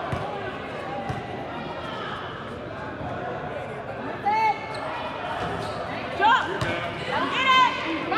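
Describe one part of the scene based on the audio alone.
Young players call out in a large echoing hall.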